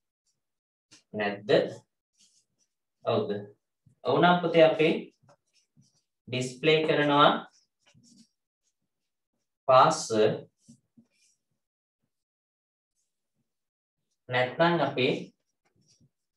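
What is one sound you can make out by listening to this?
A young man speaks calmly in short phrases, close by.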